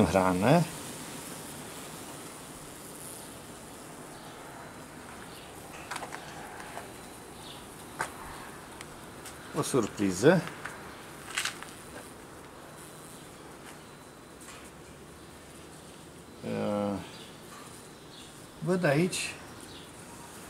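Bees buzz softly and steadily close by.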